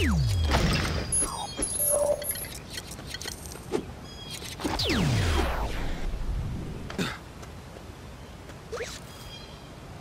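Short electronic beeps chirp.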